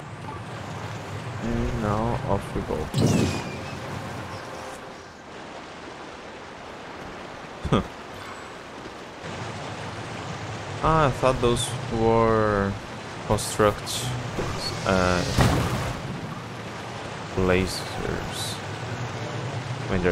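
Water splashes and rushes steadily around a moving raft.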